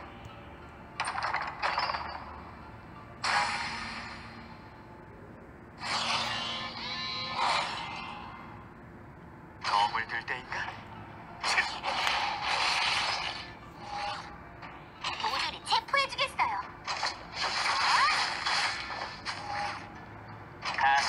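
Sword strikes and magic blasts crash in bursts.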